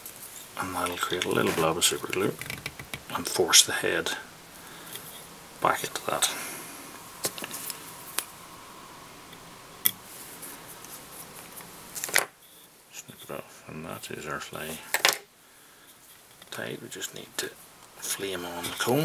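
A man talks calmly and close by.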